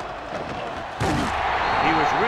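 Players collide with a heavy thud.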